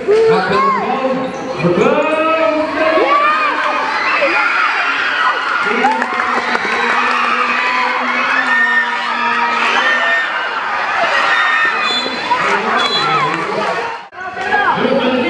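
A large crowd of young people shouts and cheers loudly.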